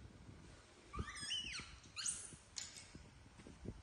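Young monkeys squeal shrilly.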